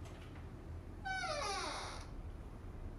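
A door creaks as it swings open.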